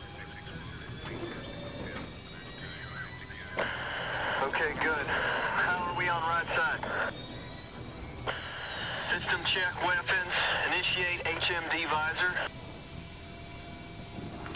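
A jet engine hums and rumbles steadily nearby.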